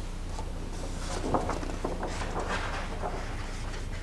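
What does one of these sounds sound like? A sheet of paper rustles as it is flipped over.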